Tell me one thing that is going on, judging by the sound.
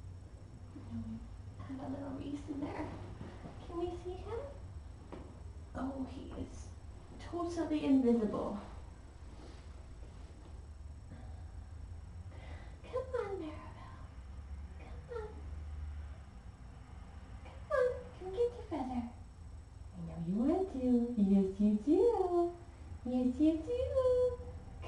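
A woman talks softly and playfully, close by.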